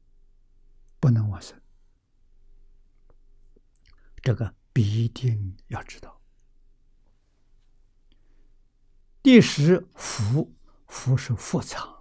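An elderly man speaks slowly and calmly, in short phrases with long pauses, close to a microphone.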